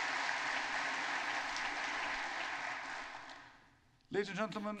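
Applause from a large crowd fills a large hall and fades away.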